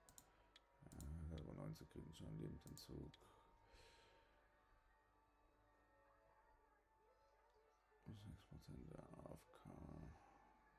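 A man talks calmly and close to a microphone, with pauses.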